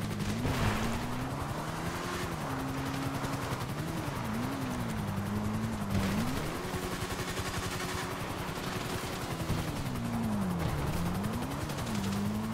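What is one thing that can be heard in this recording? Tyres crunch over rough rocky ground.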